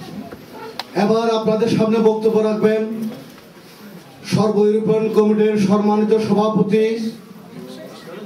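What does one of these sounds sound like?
A man sings into a microphone through a loudspeaker.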